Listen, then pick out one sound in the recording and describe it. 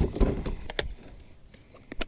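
Stiff paper pages rustle as they are turned.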